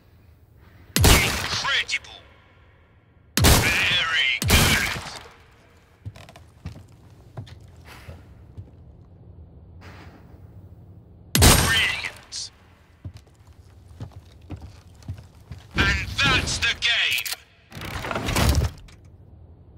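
Gunshots fire in loud sudden bursts.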